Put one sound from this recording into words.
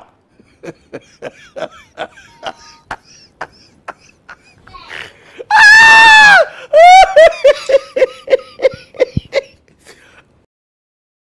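A man laughs loudly and heartily through a microphone, with a long high shriek.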